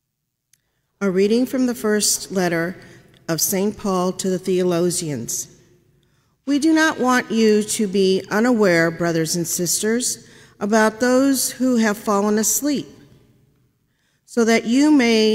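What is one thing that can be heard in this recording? A woman reads aloud calmly through a microphone in a large echoing room.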